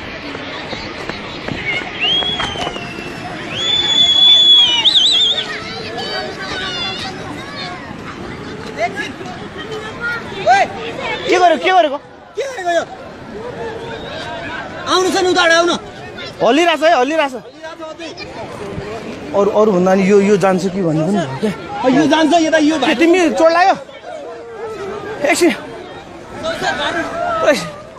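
Men and women shout and scream in alarm outdoors.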